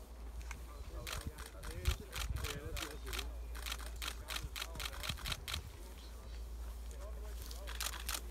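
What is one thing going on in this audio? Footsteps swish through long grass nearby.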